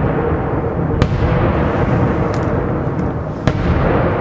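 Rocks burst and crack in sharp blasts.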